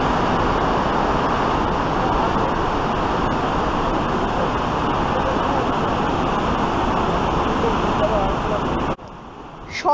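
A rushing river roars loudly and steadily.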